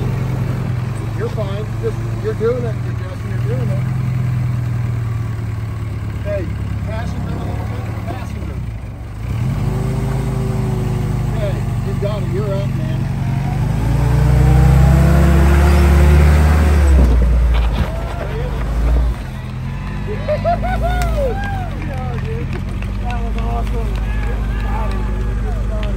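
An engine idles and rumbles steadily close by.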